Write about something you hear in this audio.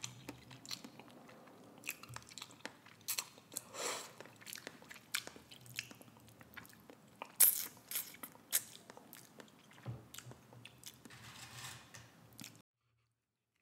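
A woman chews food close to a microphone with soft wet mouth sounds.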